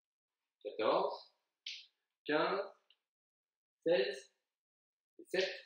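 A man speaks calmly and close by, in short phrases with pauses.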